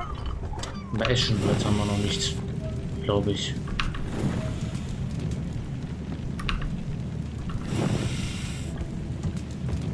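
A furnace fire roars in bursts.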